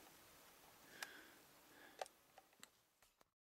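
A plastic case clicks and snaps as it is handled.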